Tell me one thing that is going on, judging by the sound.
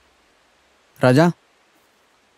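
A young man calls out briefly and loudly, close by.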